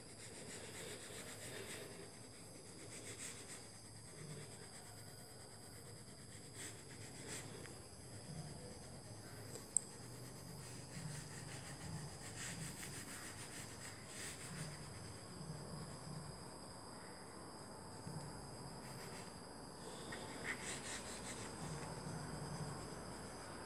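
A pencil scratches and rubs on paper.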